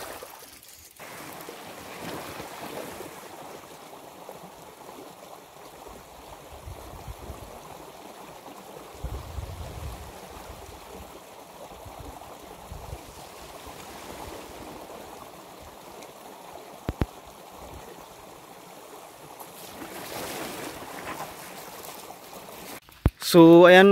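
A shallow stream burbles steadily over stones.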